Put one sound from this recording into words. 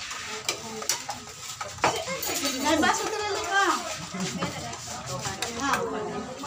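A metal spoon clinks against a serving tray.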